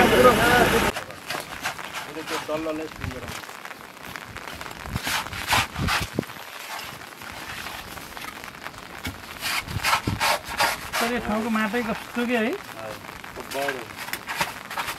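A tool scrapes and knocks against wet mud and stones.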